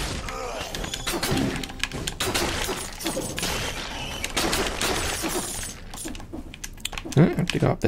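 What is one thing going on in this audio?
Swords clash and slash in quick, repeated hits.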